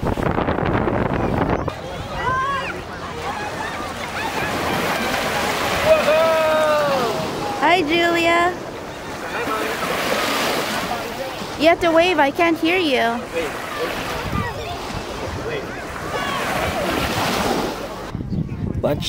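Small waves wash gently onto the shore.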